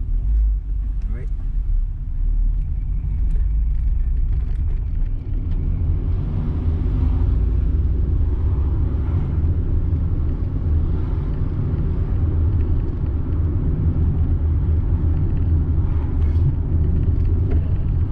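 Tyres rumble over the road surface.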